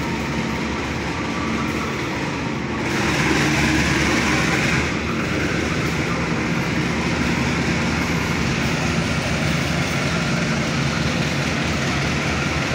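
A passenger train rumbles past steadily on the rails close by.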